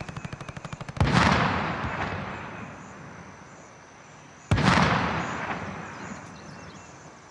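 A sniper rifle fires loud booming shots that echo away slowly.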